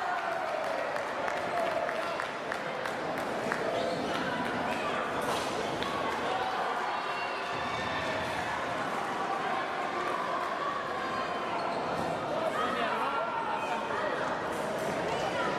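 Fencers' shoes squeak on the floor.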